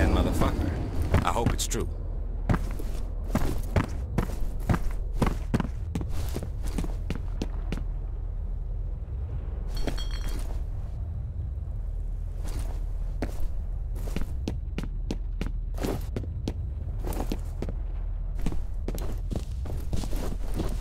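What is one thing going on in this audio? Footsteps thud steadily on a hard floor indoors.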